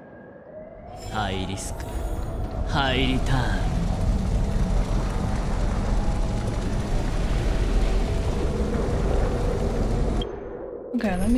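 A deep, dark magical rumble swells and roars, then cuts off.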